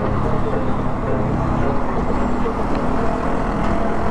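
A truck rumbles by close alongside.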